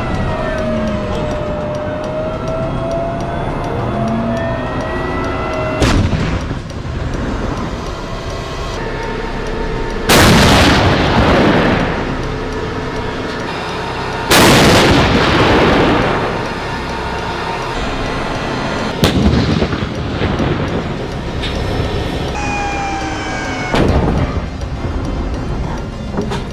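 A tank's engine rumbles and its tracks clatter.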